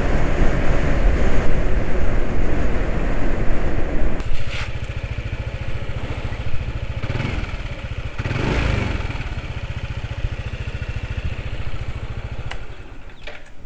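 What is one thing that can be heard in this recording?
Wind rushes loudly past a moving motor scooter.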